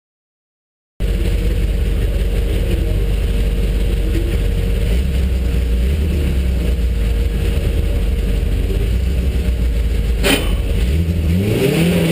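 A race car engine idles with a deep rumble.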